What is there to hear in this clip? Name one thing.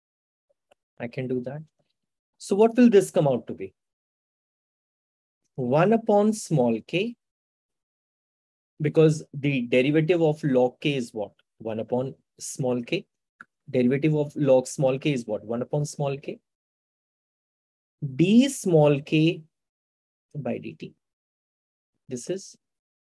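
A man speaks calmly and clearly into a close microphone, explaining in pauses.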